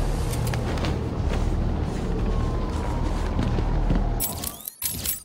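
Wind rushes loudly past a gliding game character.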